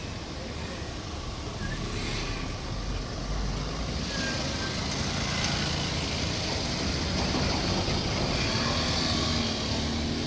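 A motorcycle engine hums as it rides past close by.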